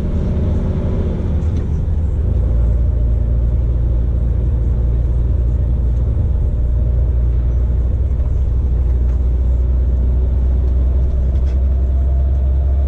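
Tyres roll and hum on the road.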